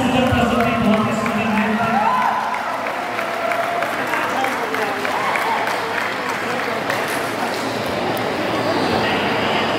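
Feet stamp on a stage floor as dancers step.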